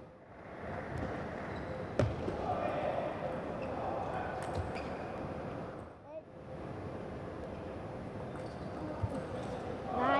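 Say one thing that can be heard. A table tennis ball clicks sharply off paddles and the table.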